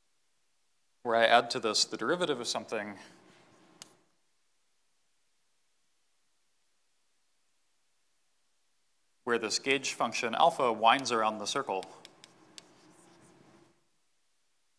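A man speaks calmly in a lecture, heard through a microphone.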